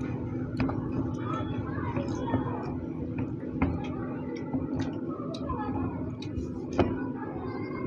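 A glass knocks against a wooden table several times.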